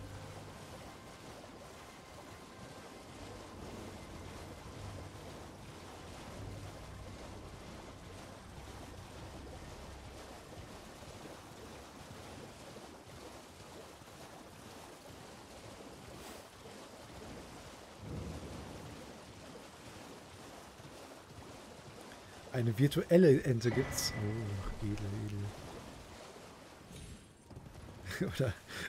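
A horse's hooves splash through shallow water.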